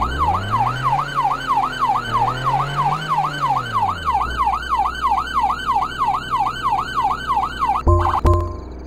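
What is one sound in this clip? A police siren wails rapidly up and down.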